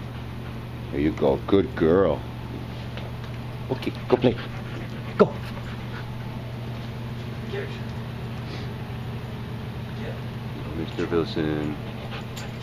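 A dog whines in short high bursts.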